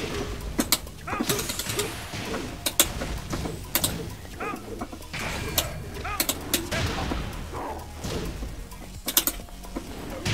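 Punches and kicks land with sharp smacks.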